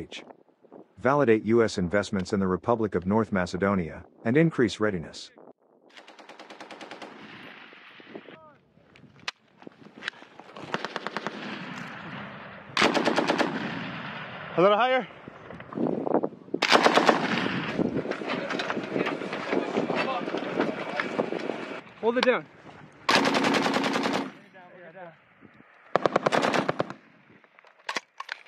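An M240 belt-fed machine gun fires in bursts.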